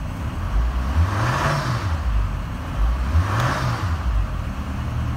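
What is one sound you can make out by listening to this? A car engine revs up twice and settles back.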